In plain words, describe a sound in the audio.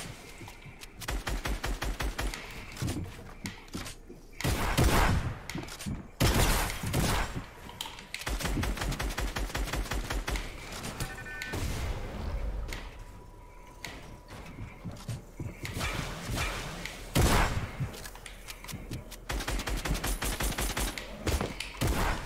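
Rapid clicking and clattering building sounds come in quick bursts.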